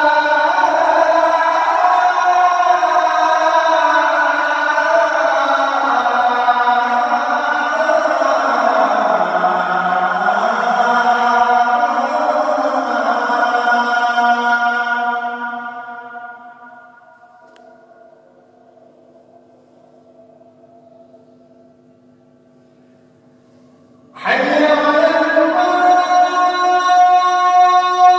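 A man chants loudly and melodically through a microphone.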